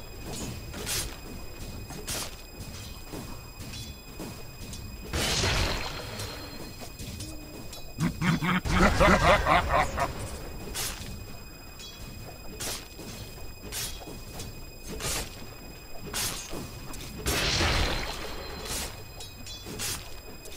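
Video game spell effects crackle and boom during a fight.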